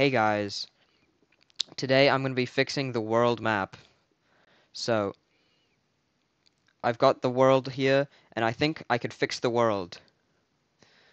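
A young man speaks calmly into a headset microphone, in short bursts.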